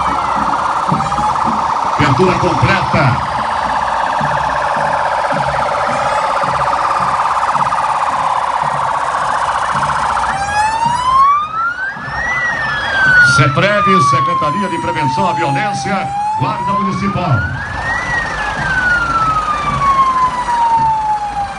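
Sirens wail loudly nearby, rising and falling.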